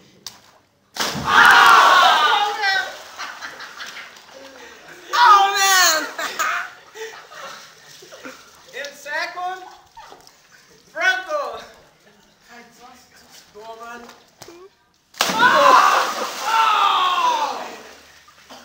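Water splashes loudly as a body plunges into a pool.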